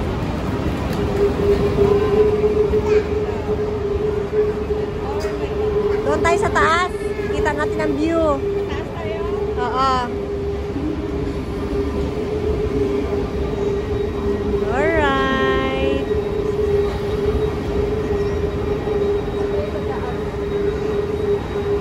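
A train's engine hums steadily.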